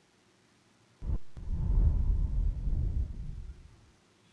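A deep, booming whoosh swells and fades as a game's opening plays.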